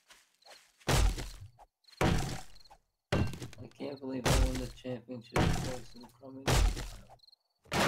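An axe chops into wood with repeated sharp thuds.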